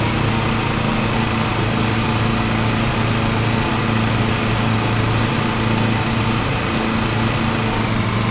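A ride-on mower engine hums steadily.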